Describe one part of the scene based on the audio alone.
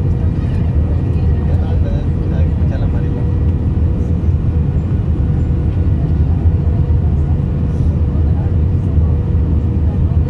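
Jet engines roar steadily as an airliner flies.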